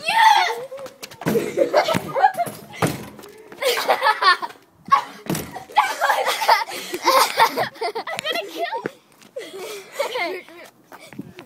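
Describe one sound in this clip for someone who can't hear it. A young girl screams and shouts close by.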